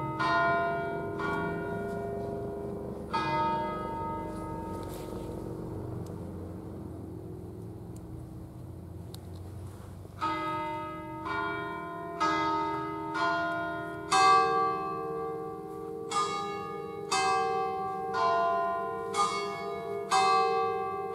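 Church bells in a tower strike out a slow tune, each note ringing on and fading.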